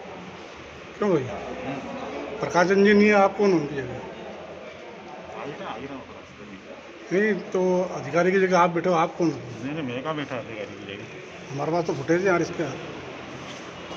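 A man speaks loudly near the microphone, with pauses.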